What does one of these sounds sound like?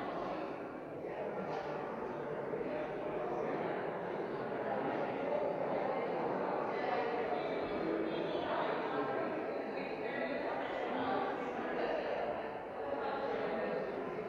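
A pipe organ plays steadily in a large echoing hall.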